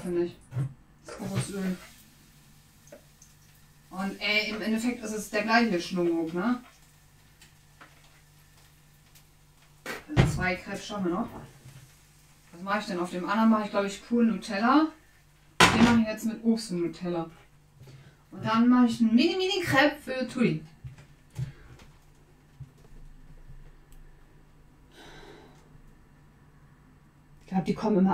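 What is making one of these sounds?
A woman talks calmly into a nearby microphone.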